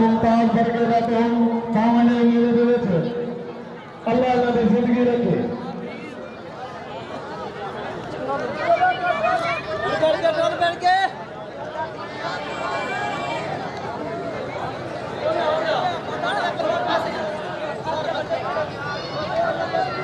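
A large crowd of men chatters and calls out outdoors.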